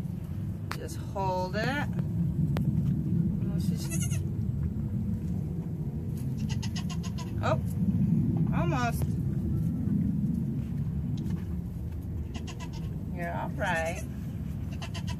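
A young goat bleats a few times.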